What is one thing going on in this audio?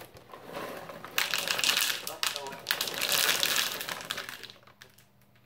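Dry cereal rings pour from a cardboard box into a plastic bowl.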